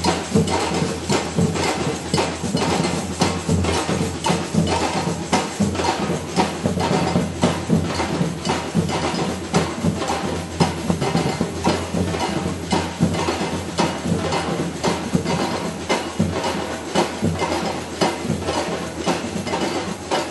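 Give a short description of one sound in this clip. A large drum band plays a loud, fast rhythm close by outdoors.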